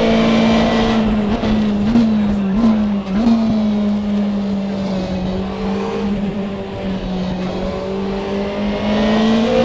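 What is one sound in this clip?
A racing car engine drops in pitch as the car brakes and shifts down, then climbs again.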